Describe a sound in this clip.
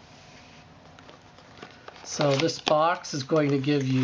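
Cardboard and paper rustle as a small box is opened.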